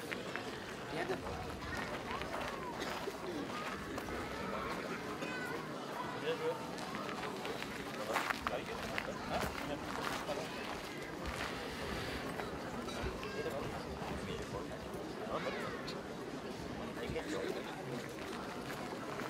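Men talk nearby.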